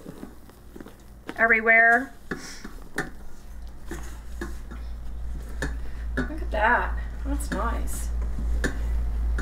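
A spatula scrapes and knocks against a metal bowl.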